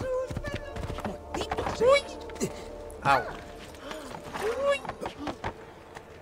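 Horse hooves clop on wooden planks.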